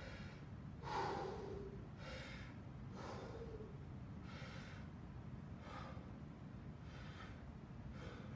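A man breathes heavily and rhythmically close by.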